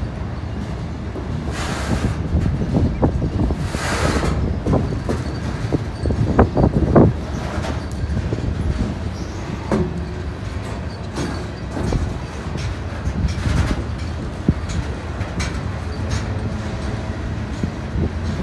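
A freight train rumbles past close by, its wheels clattering and squealing on the rails.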